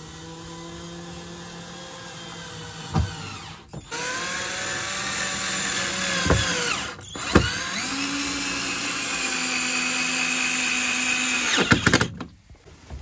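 A cordless drill whirs steadily, driving in a screw with short pauses.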